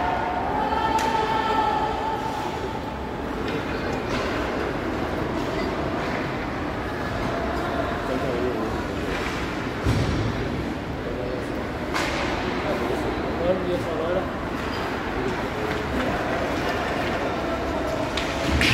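Hockey sticks clack against the puck now and then.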